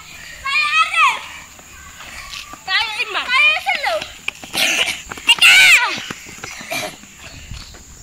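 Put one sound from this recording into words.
Children shout and cheer outdoors.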